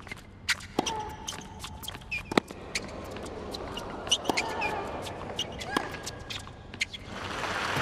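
Tennis balls are struck with sharp pops in a rally.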